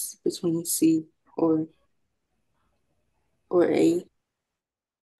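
A woman speaks in short phrases over an online call.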